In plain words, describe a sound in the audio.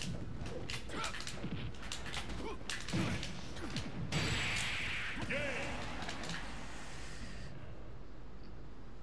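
Punches and blasts crack and thump in a fast fight.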